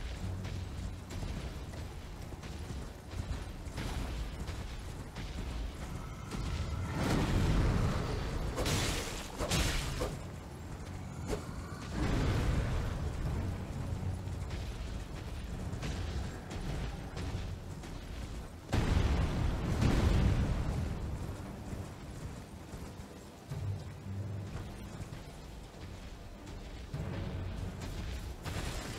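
Horse hooves thud on grass.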